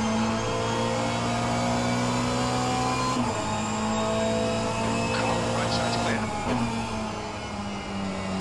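A racing car engine roars steadily and shifts pitch as the car changes gear.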